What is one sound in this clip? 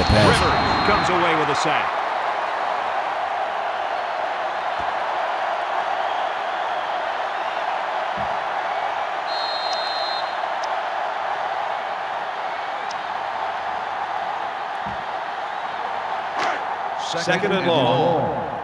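A stadium crowd murmurs and roars steadily in the background.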